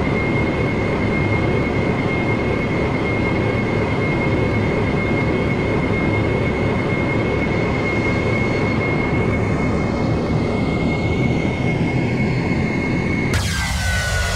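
Jet engines hum steadily, heard from inside a cockpit.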